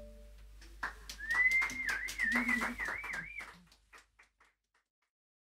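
A small stringed lute is plucked.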